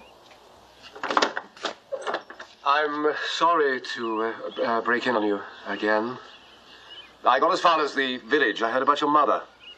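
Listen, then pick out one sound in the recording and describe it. A middle-aged man speaks calmly and politely.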